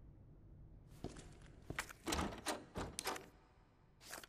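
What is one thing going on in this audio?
A door handle rattles and knocks.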